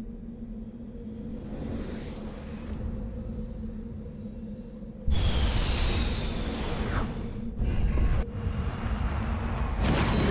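A spaceship's engines roar loudly as it flies past.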